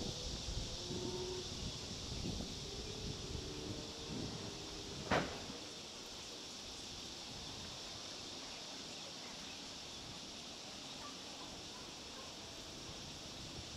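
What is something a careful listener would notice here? Water laps gently against a harbour wall outdoors.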